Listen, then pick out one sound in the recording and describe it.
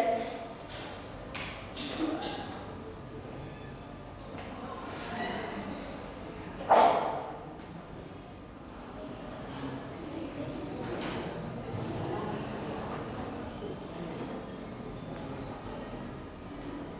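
A woman speaks to a class at a distance.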